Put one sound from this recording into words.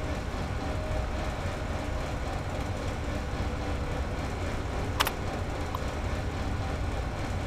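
An old computer terminal hums steadily.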